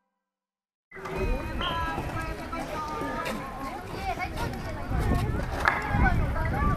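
A crowd of children and adults chatter and call out nearby outdoors.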